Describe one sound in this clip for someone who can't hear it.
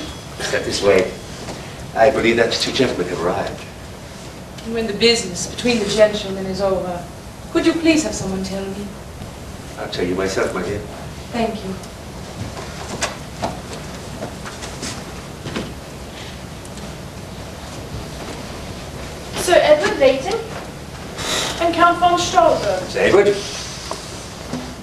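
A woman speaks on a stage, heard from the audience in a hall.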